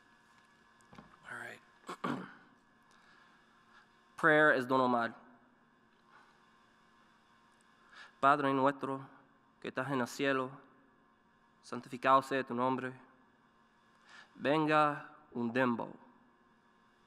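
A young man reads aloud slowly into a microphone, with long pauses, in a large echoing hall.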